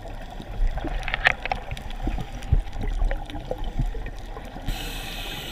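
Bubbles rush and gurgle around a diver underwater.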